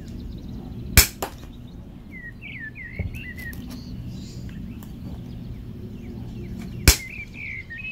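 Pliers snip through a wire with a sharp click.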